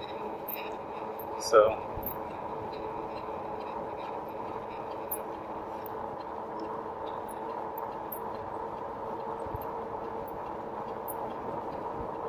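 Bicycle tyres hum on smooth pavement.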